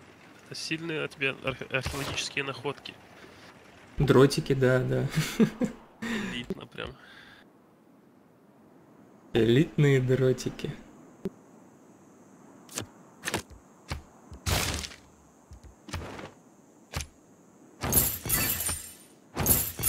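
Soft menu clicks and chimes sound as game panels open.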